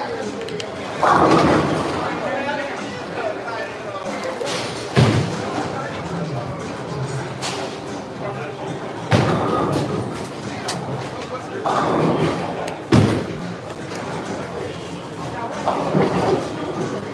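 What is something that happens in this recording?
Bowling pins clatter loudly in an echoing hall.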